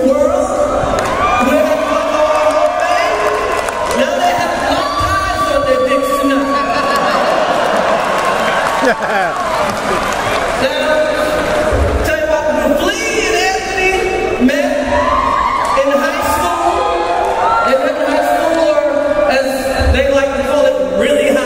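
Music plays loudly through loudspeakers in a large hall.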